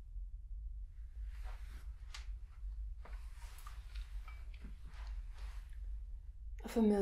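A rifle's metal parts click and rattle as it is handled.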